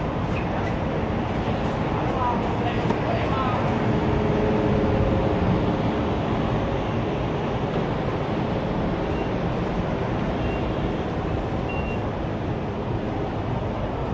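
A steady city street noise fills the air outdoors.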